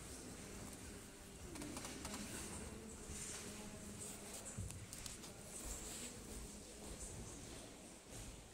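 People talk quietly in a large echoing hall.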